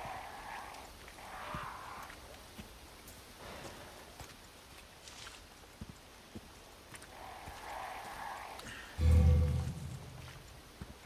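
Footsteps crunch slowly on a dirt path.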